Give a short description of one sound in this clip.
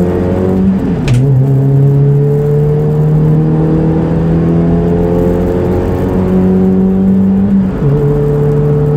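A racing car's engine drops in pitch as the driver shifts up a gear.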